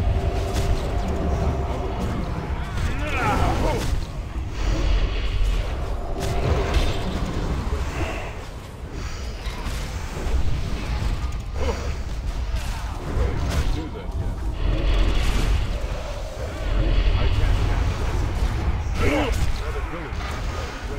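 Magic spells crackle and whoosh in a fierce battle.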